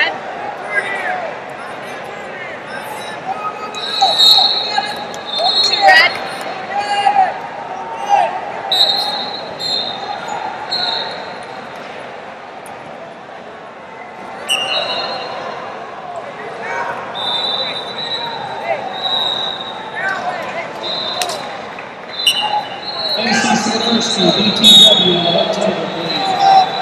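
A crowd of spectators talks and shouts in a large echoing hall.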